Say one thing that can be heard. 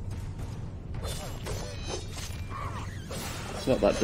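A blade swishes and slashes in quick strikes.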